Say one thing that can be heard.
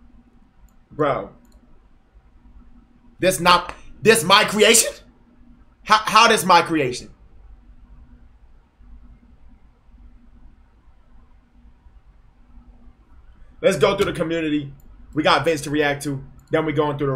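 A young man talks animatedly into a close microphone, in short bursts with pauses.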